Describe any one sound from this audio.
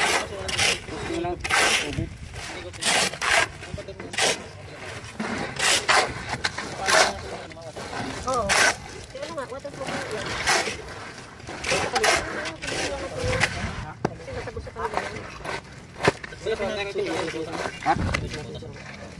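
Shovels scrape and slap through wet concrete.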